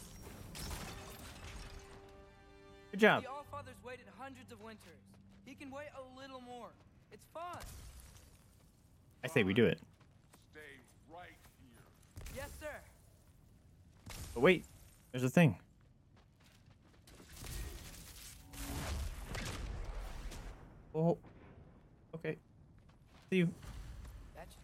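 A young man talks close to a microphone, with animation.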